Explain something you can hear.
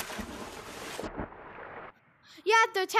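Water gurgles and swirls underwater.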